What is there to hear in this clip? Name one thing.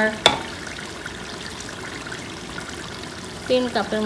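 Liquid pours into a pot of stew.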